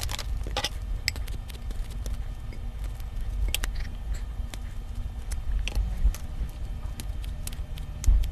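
Kitchen scissors snip through a sausage.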